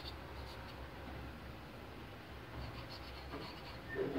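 A knife blade scrapes and taps against a hard surface.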